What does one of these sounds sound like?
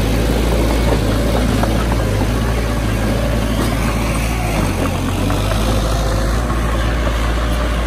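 A diesel engine of a small bulldozer rumbles steadily close by.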